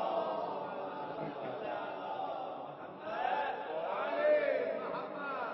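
A man sings in a slow, wavering voice.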